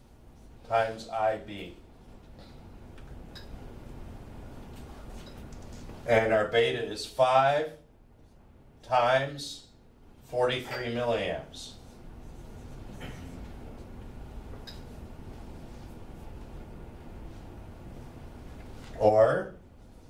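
An elderly man explains calmly, like a lecture.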